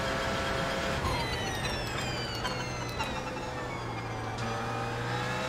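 Gearshifts crack sharply with popping bursts from the exhaust.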